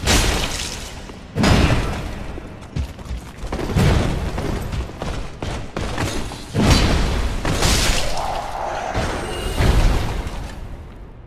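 Heavy metal blades clash and strike with loud crashes.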